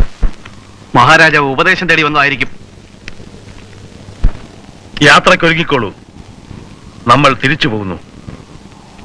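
An elderly man speaks loudly and firmly nearby.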